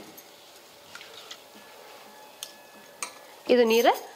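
Hands squeeze and swish soaked rice in water.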